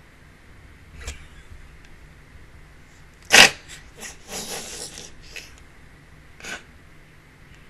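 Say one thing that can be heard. A young woman laughs loudly into a close microphone.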